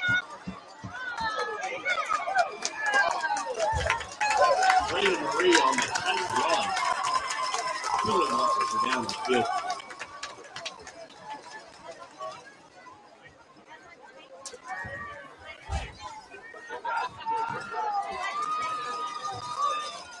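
Football players shout and call out to each other.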